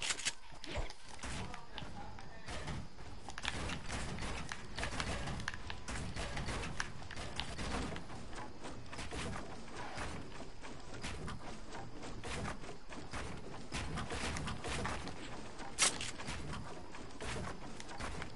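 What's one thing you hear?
Building pieces click and snap into place one after another.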